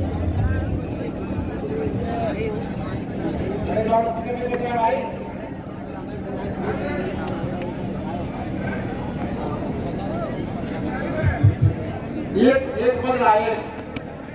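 A large crowd of men murmurs and chatters outdoors.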